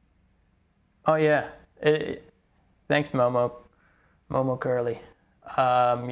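A man speaks calmly close to a microphone, in short phrases.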